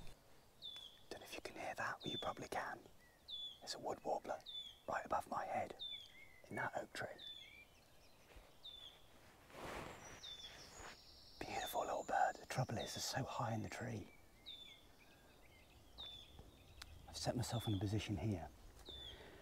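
A middle-aged man talks quietly and closely.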